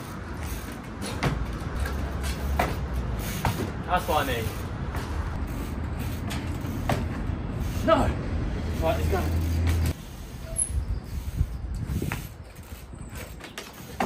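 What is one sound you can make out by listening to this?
Bicycle tyres roll over concrete.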